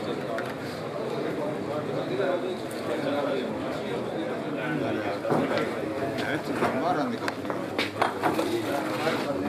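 A crowd of men murmur and talk among themselves.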